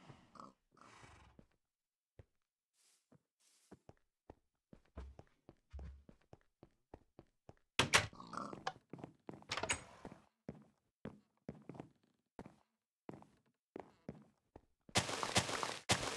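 Footsteps tap steadily on stone and wooden floors.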